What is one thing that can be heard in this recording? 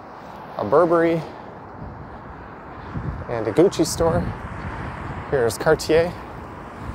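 City traffic hums faintly in the distance.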